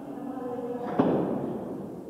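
A cymbal crashes.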